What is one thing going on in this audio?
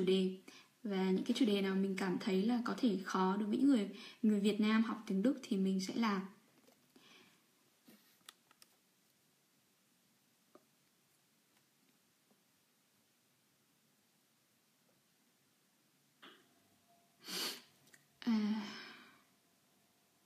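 A young woman talks calmly and close to a microphone, then falls quiet.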